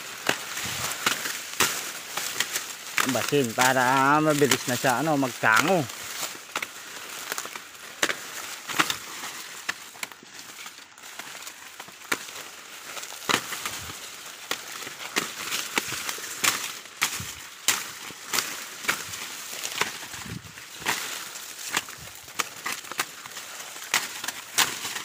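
Dry corn leaves rustle and crackle close by as someone pushes through them.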